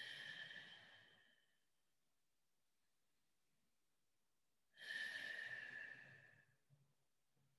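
A man breathes out slowly and audibly, close by.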